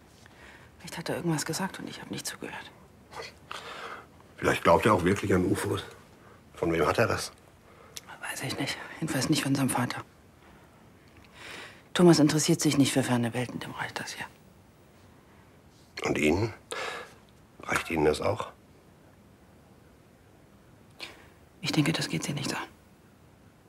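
A middle-aged woman speaks quietly and tensely up close.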